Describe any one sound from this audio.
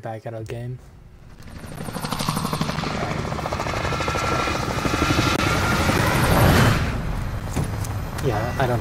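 Helicopter rotors roar loudly overhead.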